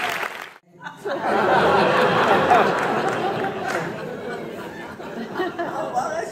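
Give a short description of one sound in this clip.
A group of women and men laugh heartily.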